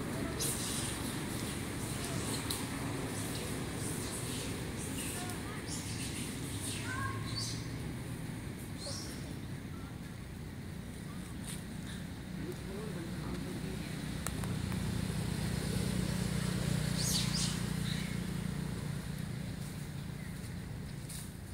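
Dry leaves rustle as a small monkey scampers across the forest floor.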